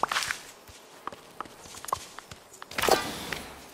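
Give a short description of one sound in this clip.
Soft game menu clicks tick as a tool is picked.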